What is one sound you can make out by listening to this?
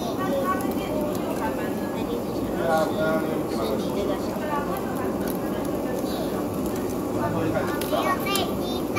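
Metal tongs tap against a wire grill.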